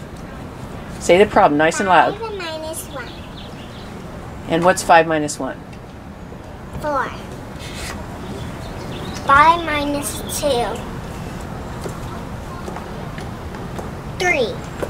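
Two young girls talk with each other nearby, in short lively bursts.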